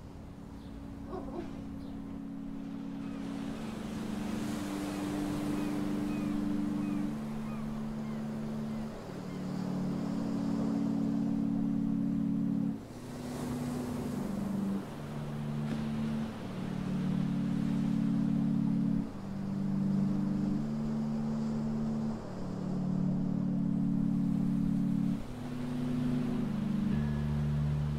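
Waves wash softly onto a shore in the distance.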